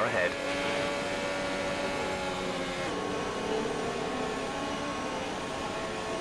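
A racing car engine whines loudly at a steady high pitch.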